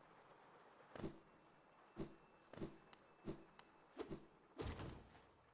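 Sharp sword slashes strike in quick succession.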